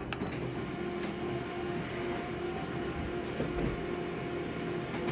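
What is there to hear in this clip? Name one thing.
A copier machine hums and whirs steadily while printing.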